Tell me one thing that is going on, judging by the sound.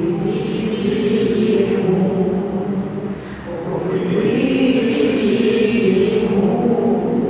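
A small choir of elderly women and an elderly man sings together in an echoing hall.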